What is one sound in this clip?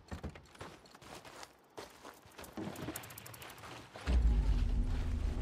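Footsteps crunch on dry dirt and grass.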